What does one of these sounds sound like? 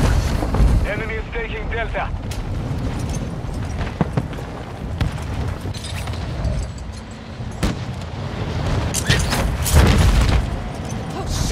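Wind rushes loudly past during a fall through the air.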